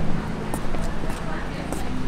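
A man knocks on a wooden door.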